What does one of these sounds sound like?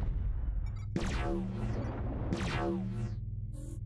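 Laser weapons fire in quick zaps.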